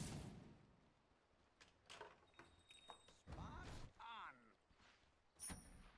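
Sharp game sound effects of spells and hits crackle and burst.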